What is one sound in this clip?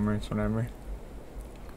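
A man speaks briefly and calmly close by.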